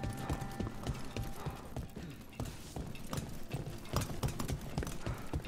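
Armoured footsteps clatter quickly on a stone floor.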